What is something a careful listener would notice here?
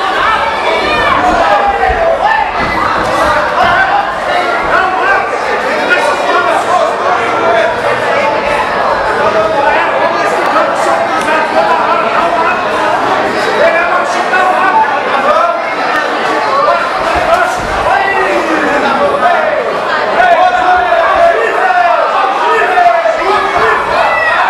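A crowd shouts and cheers loudly all around.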